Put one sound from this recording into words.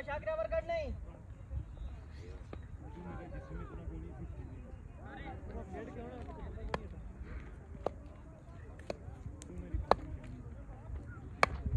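Men call out and chatter outdoors at a distance.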